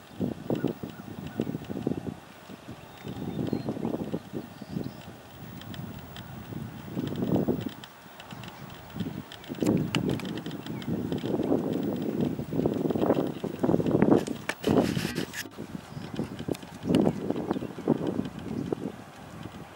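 A horse trots on soft sand.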